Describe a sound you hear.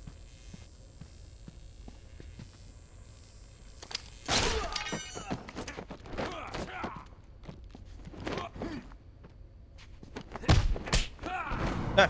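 Punches and blows thud during a fight.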